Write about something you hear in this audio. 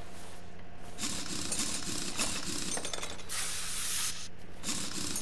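A pneumatic wrench whirrs loudly as it spins off wheel nuts.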